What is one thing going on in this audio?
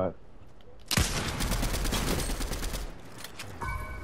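A video game assault rifle fires a rapid burst.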